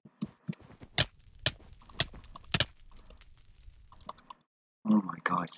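A sword strikes with sharp hits.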